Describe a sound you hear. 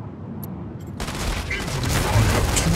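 Heavy robot machinery whirs and rumbles loudly.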